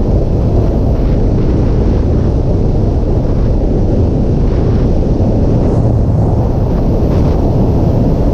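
A motorcycle engine roars steadily while riding.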